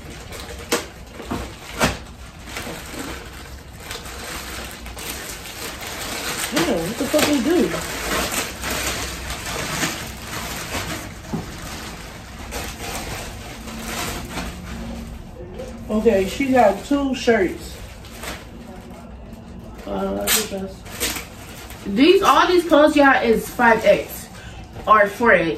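Plastic mailer bags rustle and crinkle as they are handled.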